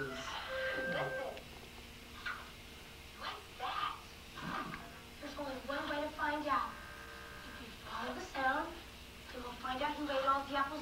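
A television plays nearby.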